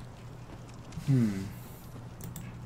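A young man makes a short rising cry close to a microphone.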